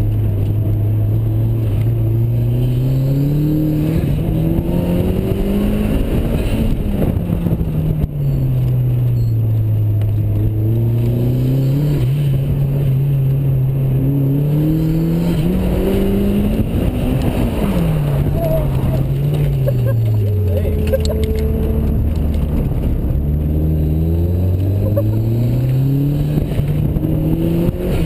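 Tyres squeal on pavement in the corners.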